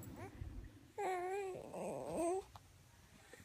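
A baby coos and whimpers softly close by.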